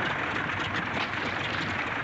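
Water splashes against a floating plane.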